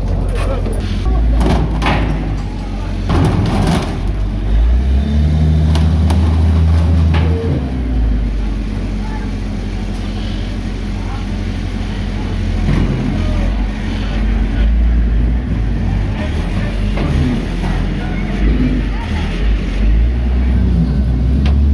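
A heavy loader's diesel engine rumbles and revs nearby.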